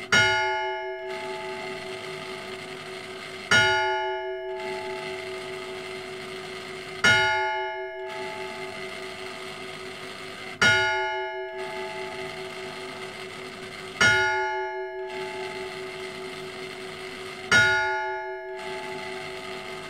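A church bell tolls slowly and evenly, each stroke ringing on and fading.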